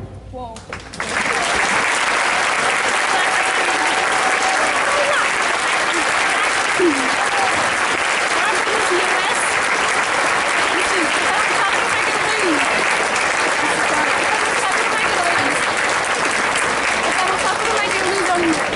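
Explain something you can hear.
An audience claps loudly.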